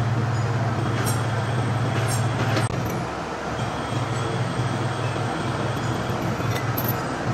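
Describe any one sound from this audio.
A steel chain clinks against metal.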